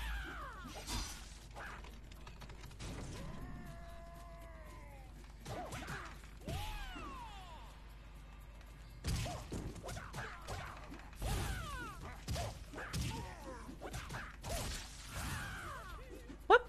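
Punches and kicks land with sharp thuds in a fast fight.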